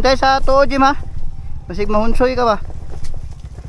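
A motorcycle engine revs up sharply a few times.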